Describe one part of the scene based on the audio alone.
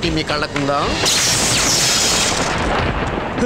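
Fireworks fizz and crackle loudly.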